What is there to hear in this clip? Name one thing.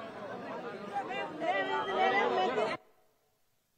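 A crowd of people chatters close by.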